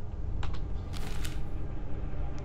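Paper rustles as a note is unfolded.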